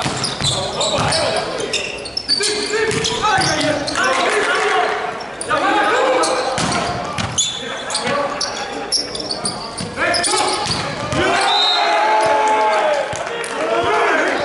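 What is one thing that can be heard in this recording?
Sneakers squeak on the hard court.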